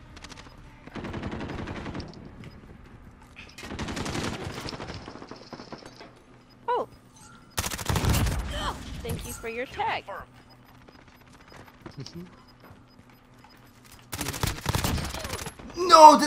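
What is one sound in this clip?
Gunfire from a video game rattles in bursts.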